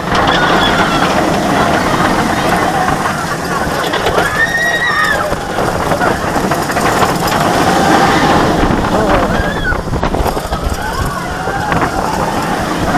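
Wind rushes past a moving roller coaster.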